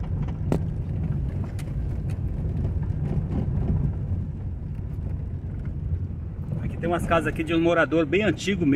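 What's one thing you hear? A vehicle rumbles steadily along a bumpy dirt road.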